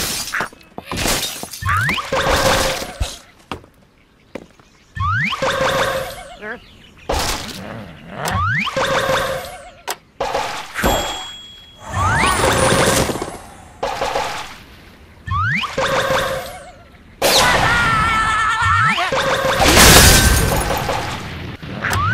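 Wooden and ice blocks crash and clatter as they topple.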